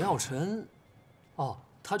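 A young man exclaims in surprise.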